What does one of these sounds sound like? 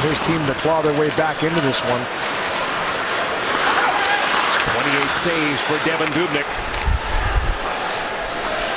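Hockey sticks click against a puck.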